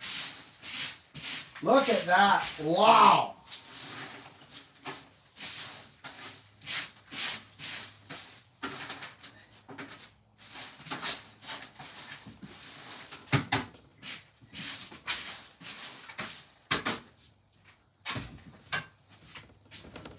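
A man rummages through a pile of metal tools, which clink and clatter.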